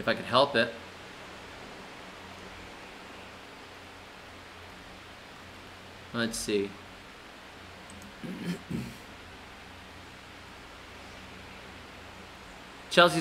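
A man speaks calmly in short bursts, close to a microphone, with long pauses.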